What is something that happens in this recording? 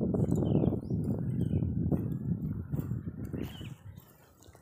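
Footsteps crunch on dry grass close by.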